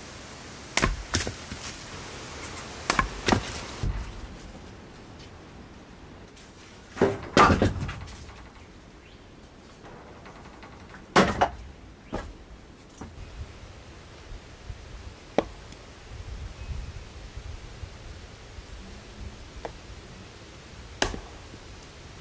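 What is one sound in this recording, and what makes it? A maul strikes and splits wooden logs with sharp cracks.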